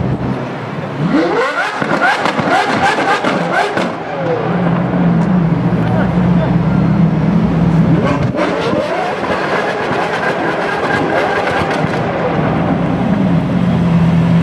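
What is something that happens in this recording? A sports car engine revs sharply, rising and falling in bursts.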